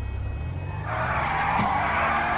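Car tyres screech as they spin.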